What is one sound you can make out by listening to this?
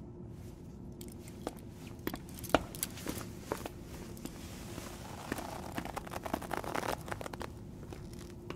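Boots step on a hard floor.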